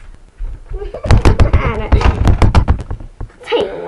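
A young girl giggles close by.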